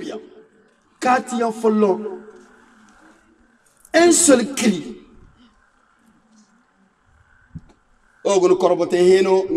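A man speaks forcefully through a microphone in bursts, with pauses, in an echoing room.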